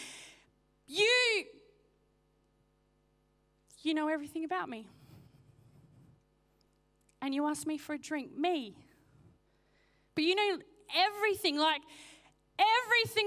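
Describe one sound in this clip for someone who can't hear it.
A woman speaks with animation through a microphone, in short bursts with pauses.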